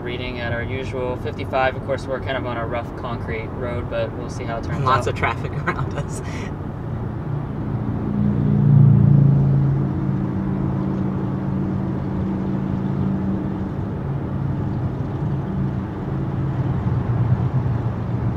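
Tyres hum and rumble steadily on a highway inside a moving car.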